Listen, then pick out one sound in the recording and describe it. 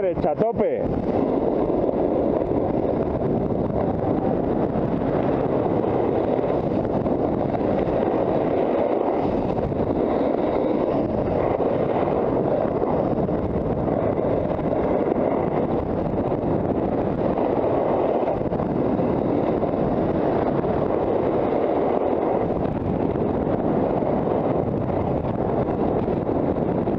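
Wind rushes loudly past while riding downhill.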